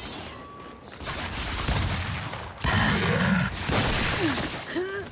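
Loud gunfire and blasts burst out close by.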